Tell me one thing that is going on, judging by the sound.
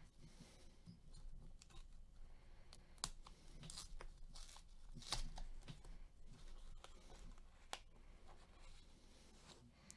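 A coin scratches at a card's surface in short strokes.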